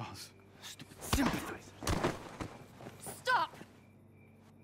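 Bodies scuffle and thud in a brief struggle.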